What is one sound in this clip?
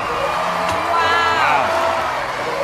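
A woman gasps in surprise.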